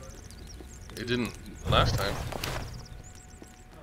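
A fire flares up with a loud crackling whoosh.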